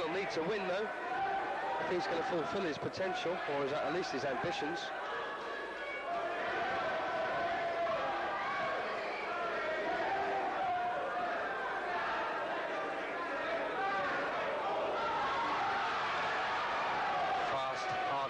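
Boxing gloves thud against bodies in quick punches.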